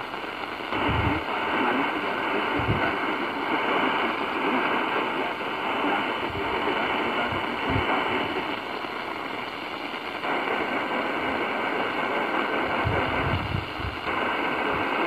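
A handheld radio's sound shifts abruptly as a new station is tuned in.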